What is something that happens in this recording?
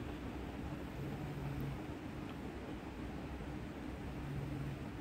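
A roulette ball rolls and rattles around a spinning wheel.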